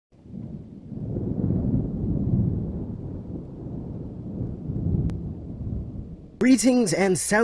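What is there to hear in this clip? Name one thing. Thunder rumbles low and long.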